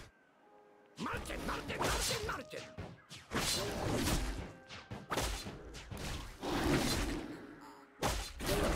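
Sharp game sound effects of weapons hitting a monster ring out again and again.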